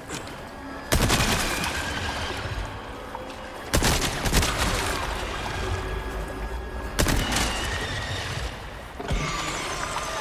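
Gunshots ring out, loud and echoing.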